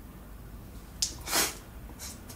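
A young man blows sharply out through his nose.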